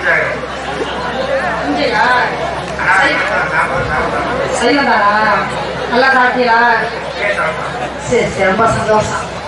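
A man sings loudly through a loudspeaker in the open air.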